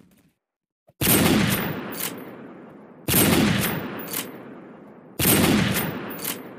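A heavy rifle fires booming shots that echo away.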